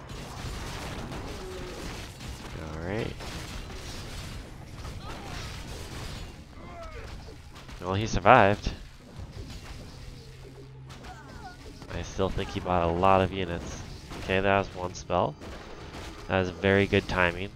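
Swords and weapons clash in a game battle.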